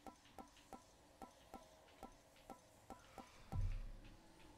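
Soft menu clicks tick in quick succession.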